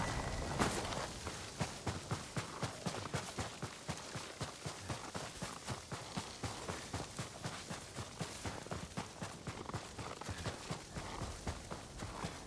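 Quick footsteps crunch through snow at a run.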